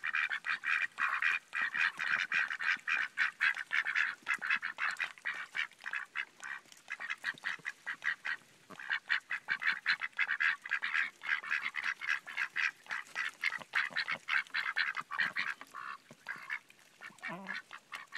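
A duck dabbles and slurps water from a bucket.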